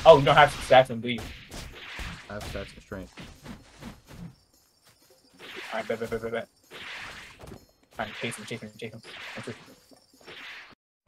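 Swift attacks whoosh through the air.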